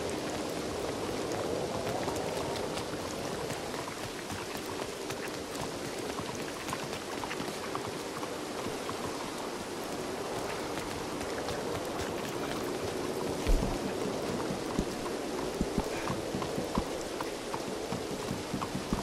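Steady rain falls and patters on stone pavement.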